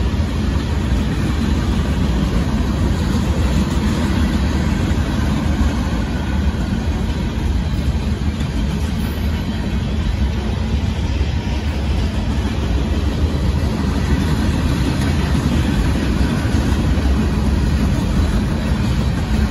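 A freight train rumbles and clatters steadily past nearby.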